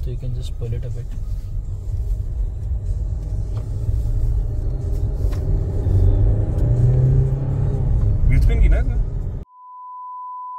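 A car engine hums low and steady from inside the moving car.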